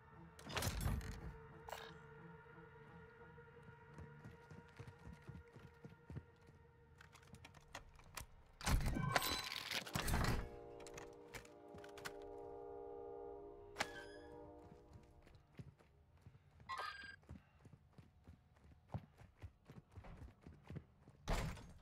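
Footsteps tap across a hard floor indoors.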